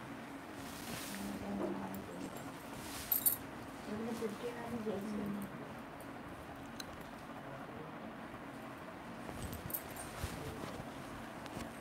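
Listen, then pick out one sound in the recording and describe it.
Silk fabric rustles softly.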